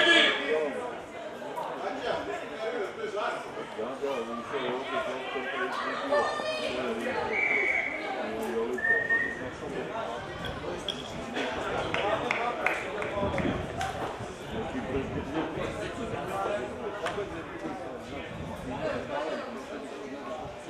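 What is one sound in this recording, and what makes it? Spectators talk nearby in men's voices.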